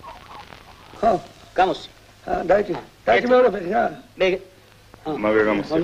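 A man talks in short bursts.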